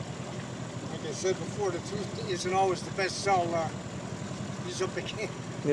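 An elderly man talks calmly nearby, outdoors.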